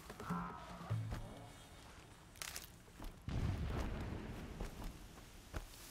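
Leaves rustle as someone pushes through dense plants.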